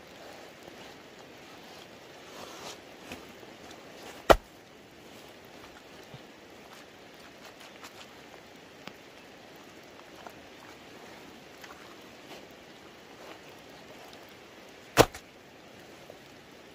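Wet mud squelches under hands and boots.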